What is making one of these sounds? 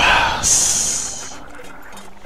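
Smoke bursts out with a puff.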